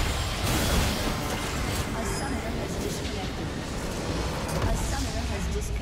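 Magic blasts crackle and boom in a chaotic battle.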